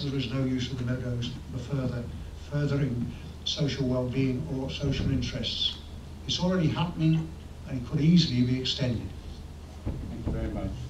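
An elderly man reads out calmly through a microphone.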